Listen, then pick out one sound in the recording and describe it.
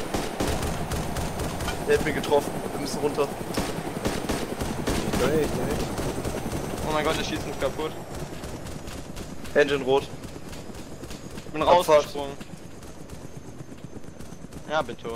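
A helicopter's rotor thumps steadily as it flies low.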